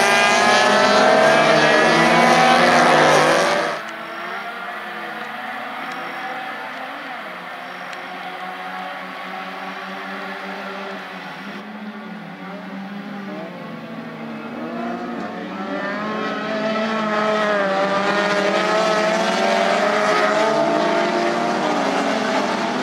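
Small race car engines roar and rev as the cars speed past.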